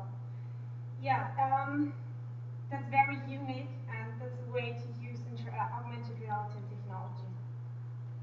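A woman speaks through a microphone in a large hall, her voice echoing.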